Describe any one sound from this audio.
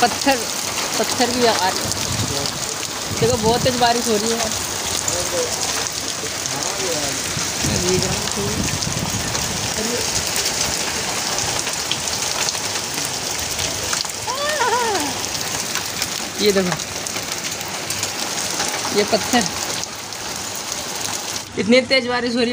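Rain patters steadily outdoors.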